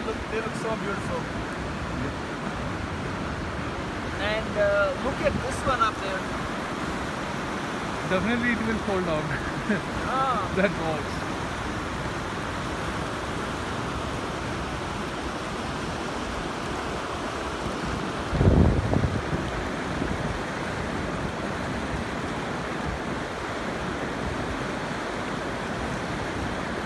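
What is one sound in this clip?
A river rushes and splashes steadily nearby.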